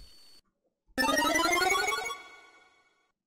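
A retro video game plays a rising chime as a stat goes up.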